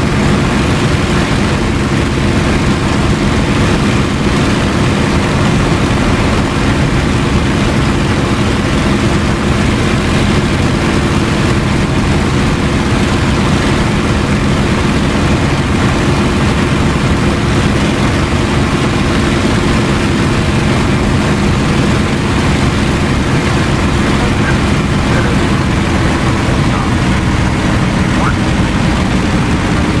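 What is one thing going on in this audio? Wind rushes past an aircraft canopy.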